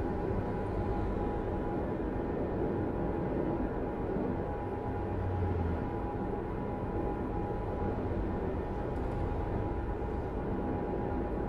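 Tyres roll and hum on the road.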